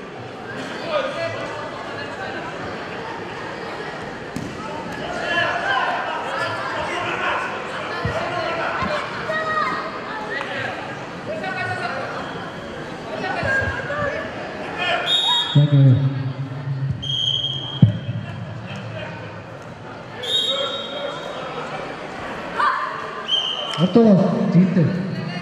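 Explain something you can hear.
A crowd of children and adults chatters and calls out in a large echoing hall.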